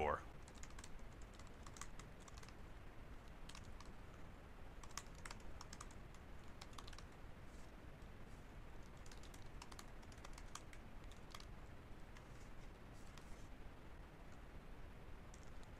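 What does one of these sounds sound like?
Keys clack on a keyboard in quick bursts of typing.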